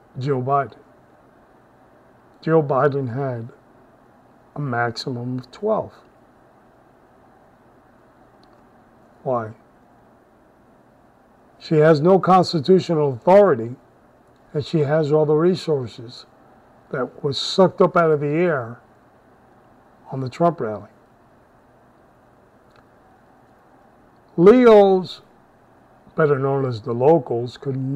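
A middle-aged man speaks calmly in short phrases, close to a microphone, with pauses between them.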